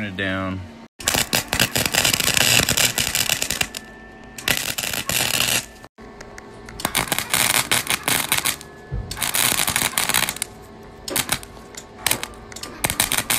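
A welding arc crackles and sizzles loudly in bursts.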